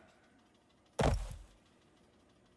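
A body falls to the floor with a heavy thud.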